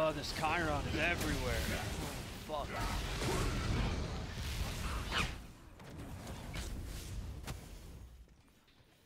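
Game spell effects crackle and whoosh.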